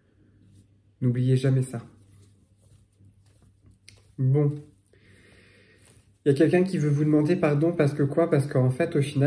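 A man speaks close to the microphone in a relaxed, casual way.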